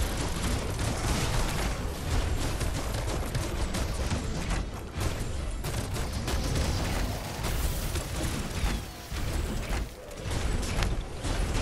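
Lightning crackles and booms.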